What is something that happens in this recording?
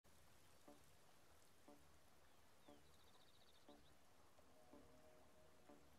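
A countdown timer beeps once every second.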